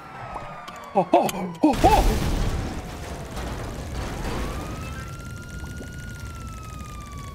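A police siren wails steadily.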